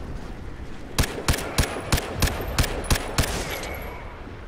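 A rifle fires in quick single shots.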